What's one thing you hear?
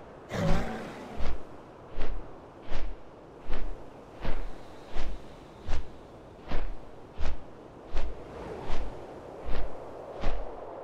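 Large wings flap with steady, rhythmic whooshes.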